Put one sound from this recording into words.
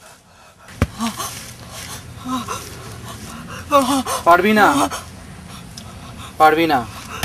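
A young man speaks loudly and with animation nearby.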